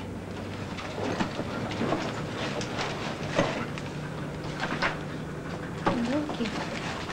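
Paper crinkles and rustles.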